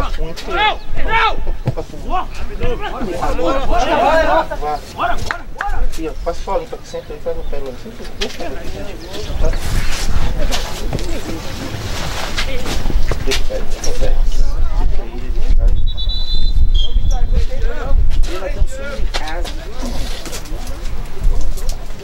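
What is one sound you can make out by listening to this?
Young players shout and call out across an open field.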